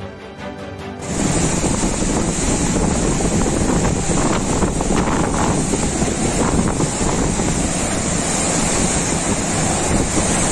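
Gale-force wind roars through trees outdoors.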